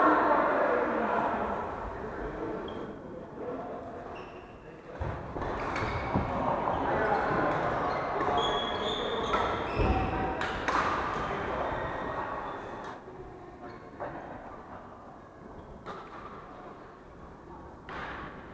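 Shuttlecocks are struck with rackets in sharp pops, echoing in a large hall.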